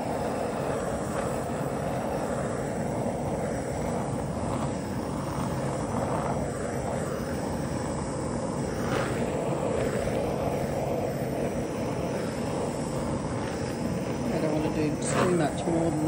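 A small butane torch roars with a steady hiss.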